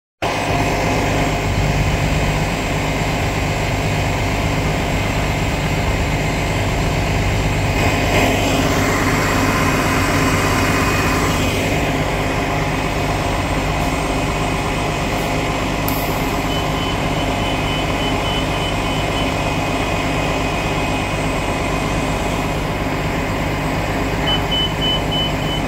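A bus engine idles with a steady low rumble close by.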